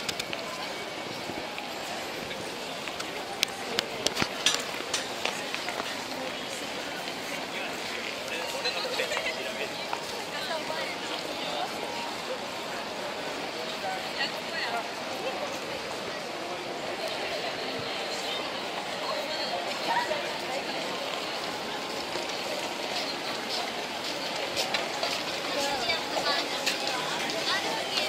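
Footsteps of many people patter on pavement.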